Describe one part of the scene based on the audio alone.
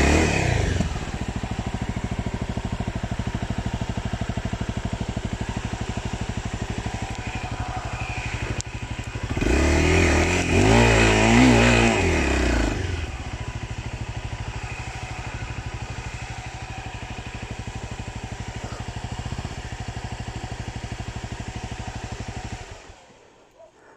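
A motorcycle engine idles with a steady, rapid putter close by.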